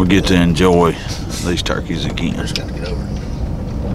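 A young man talks calmly close to the microphone.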